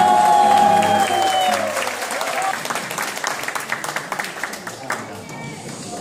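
A crowd claps and cheers loudly in an echoing hall.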